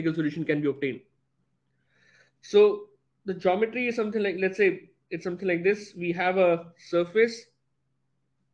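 A man speaks calmly into a microphone, as if teaching.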